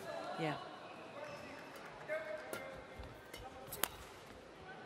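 A shuttlecock is struck sharply with a racket.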